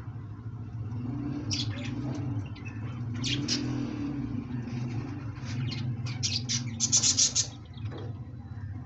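A pigeon coos in low, throaty rolls.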